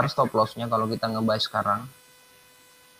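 A young man speaks with animation through a microphone on an online call.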